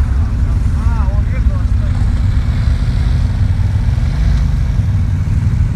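Off-road vehicle engines rumble and idle close by.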